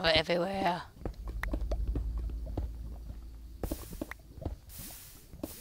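Lava bubbles and pops with a low rumble.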